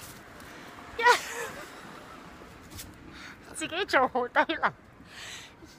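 A young woman laughs close by.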